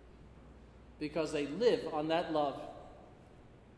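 An older man speaks calmly through a microphone in a large echoing hall.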